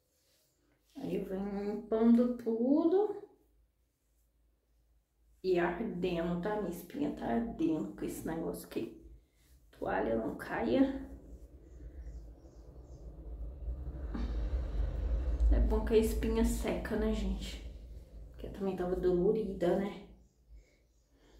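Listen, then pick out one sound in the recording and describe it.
A woman talks close up, calmly and with expression.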